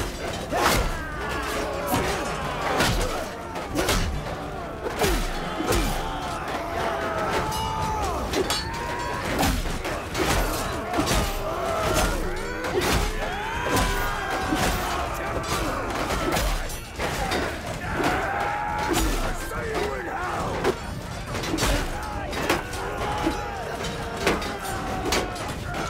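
Swords and shields clash and clang repeatedly in a chaotic melee.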